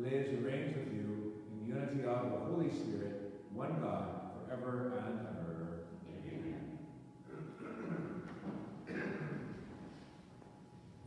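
A middle-aged man speaks calmly, close by, in an echoing room.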